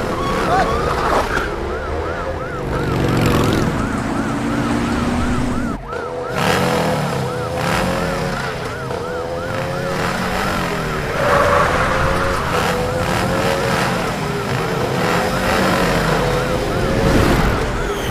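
A motorcycle engine roars at speed.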